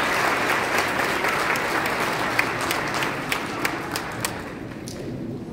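An audience applauds in a large hall, and the clapping fades.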